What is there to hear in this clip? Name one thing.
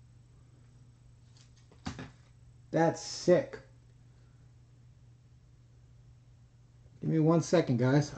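Trading cards rustle and slide between hands.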